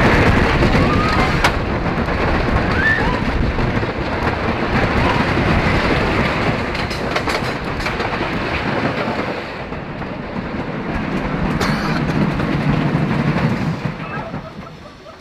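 A roller coaster train rumbles and clatters loudly along a wooden track.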